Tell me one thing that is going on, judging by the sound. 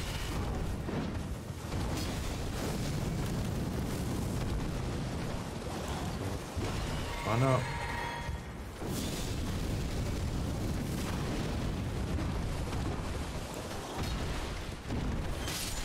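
Hooves gallop heavily on the ground.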